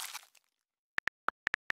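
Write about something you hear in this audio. Keys tap on a touch keyboard with short, sharp clicks.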